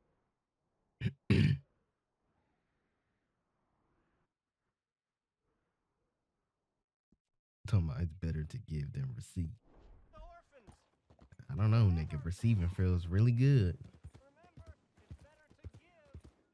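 A young man talks animatedly close to a microphone.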